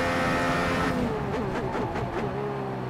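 A racing car engine drops in pitch and burbles as the car brakes and shifts down.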